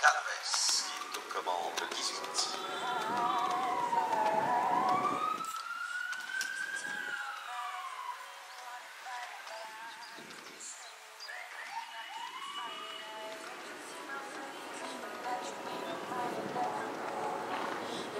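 A horse canters with soft hoofbeats thudding on sand.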